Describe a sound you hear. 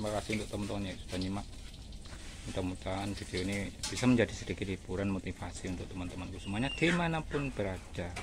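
A metal spatula scrapes a wok.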